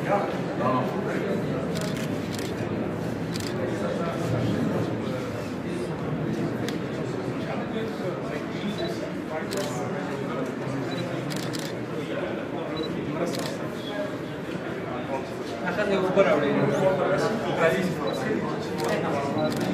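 A man talks calmly and explains, close by.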